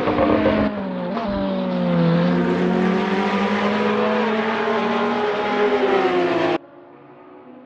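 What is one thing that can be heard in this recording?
A racing car engine roars loudly and revs up and down through the gears.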